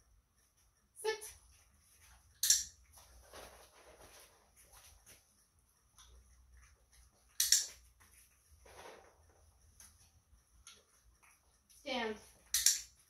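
A woman speaks to a dog in a bright, encouraging voice.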